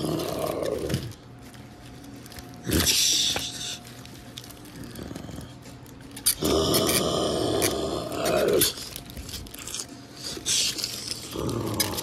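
Plastic toy figures knock and scrape against each other.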